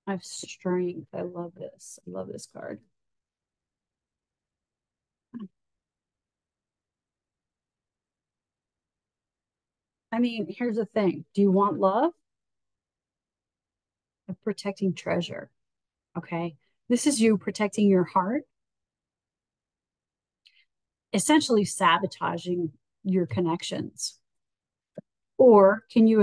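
A middle-aged woman speaks calmly and closely into a microphone, with pauses.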